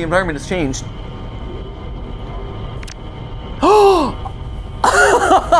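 A young man cries out loudly and excitedly into a microphone.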